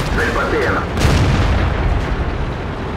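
A shell explodes with a loud boom.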